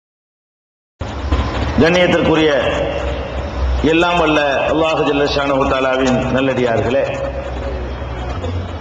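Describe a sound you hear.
A man speaks forcefully into a microphone, heard through a loudspeaker in an open space.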